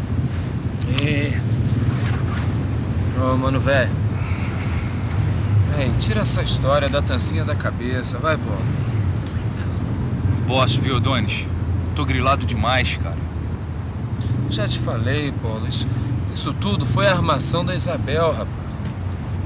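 Young men talk quietly with each other, close by.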